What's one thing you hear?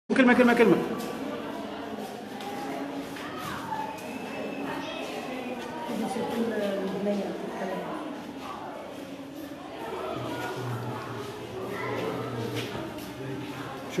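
Several children and adults talk close by.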